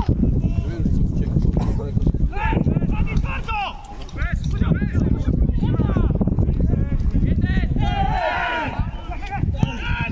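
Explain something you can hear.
Players shout to one another across an open field.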